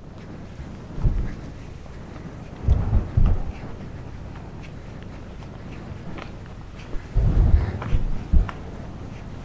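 Wind buffets the microphone in short gusts outdoors.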